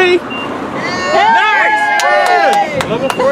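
A young man cheers loudly.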